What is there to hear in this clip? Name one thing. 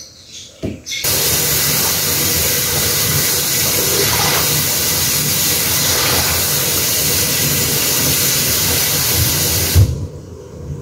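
Water runs from a tap into a basin.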